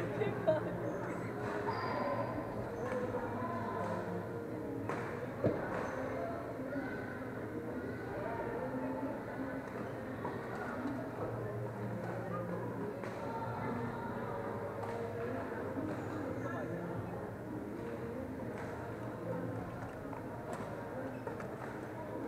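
Sneakers squeak on a synthetic court floor.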